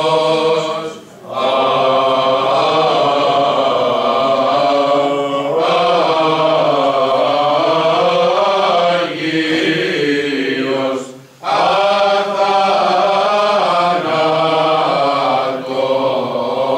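A choir of men and women sings a slow chant in an echoing room.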